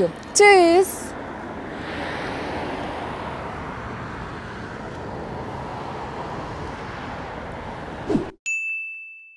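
Wind and distant city noise blow steadily outdoors.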